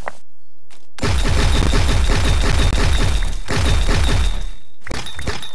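A game block bursts open with a loud crackling rush of sound effects.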